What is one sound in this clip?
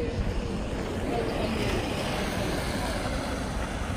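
A small electric cart drives past close by.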